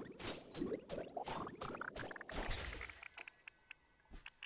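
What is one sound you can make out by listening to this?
A bright chime rises in pitch.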